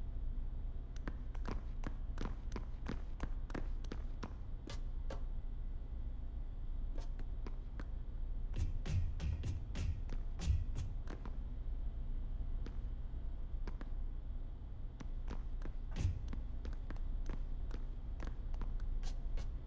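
Soft footsteps tap quickly along a ceiling.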